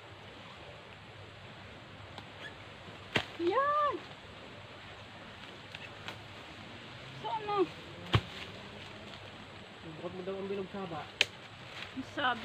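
A wooden pole knocks and rustles against branches.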